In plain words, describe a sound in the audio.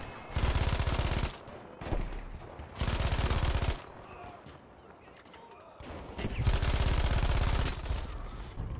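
A machine gun fires rapid, loud bursts close by.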